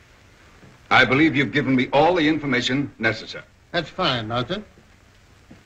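An elderly man speaks calmly and politely.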